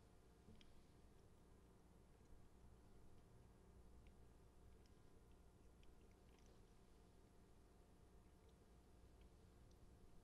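A man speaks quietly and slowly through a microphone.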